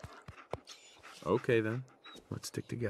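A dog whimpers softly.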